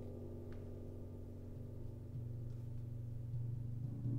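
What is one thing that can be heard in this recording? Large gongs are struck softly and drone.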